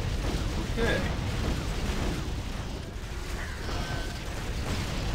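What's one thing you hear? Weapons thud and clang against enemies.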